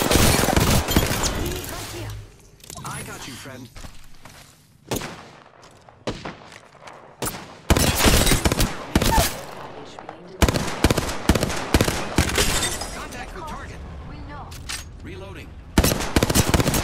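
Rapid gunfire bursts out in quick volleys.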